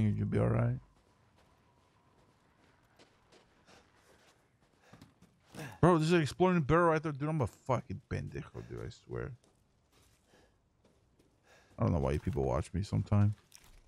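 Footsteps crunch softly on snow and creak on wooden boards.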